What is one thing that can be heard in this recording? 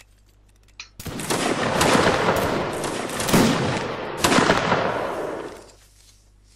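A volley of muskets fires with loud cracking bangs.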